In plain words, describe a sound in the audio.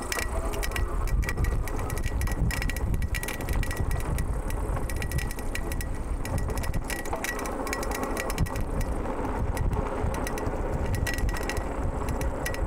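Bicycle tyres rattle and crunch over a bumpy dirt track.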